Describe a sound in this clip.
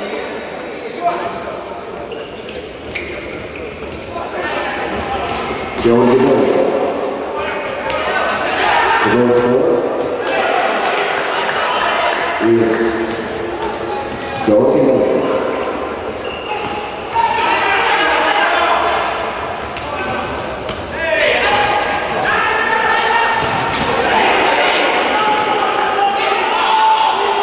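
A crowd chants and cheers in a large echoing indoor arena.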